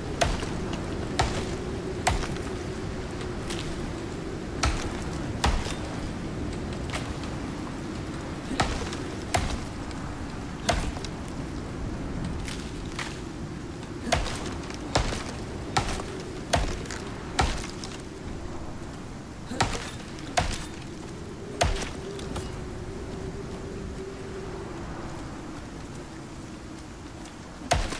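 An axe chops into wood with sharp, repeated knocks.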